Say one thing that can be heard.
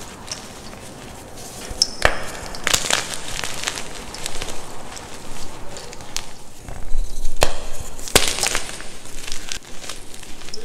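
Powdery chalk rustles and sifts between fingers.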